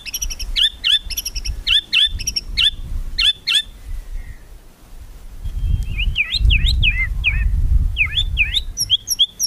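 A songbird sings loud, sweet whistling phrases close by.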